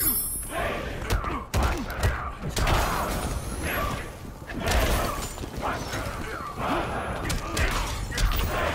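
Heavy punches land with loud thuds and cracks.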